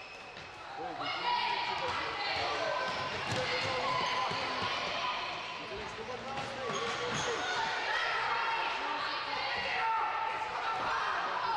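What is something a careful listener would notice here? Young girls shout and call out to each other across the hall.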